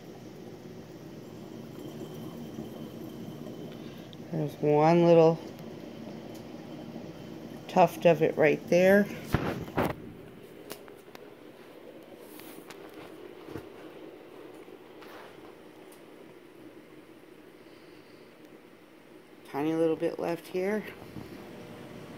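Water flows and gurgles softly in an aquarium.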